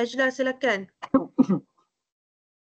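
A young woman laughs through an online call.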